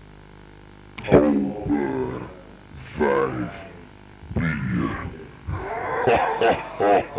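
A man speaks in a gruff, theatrical voice close by.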